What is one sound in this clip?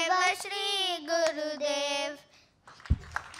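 Children sing together into microphones in an echoing hall.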